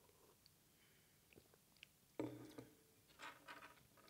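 A glass is set down on a table.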